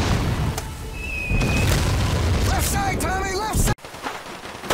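An explosion booms and throws up water.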